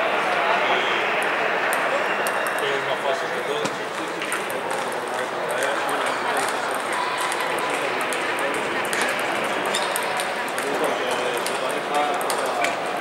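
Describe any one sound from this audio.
A crowd of men and women murmurs steadily in a large echoing hall.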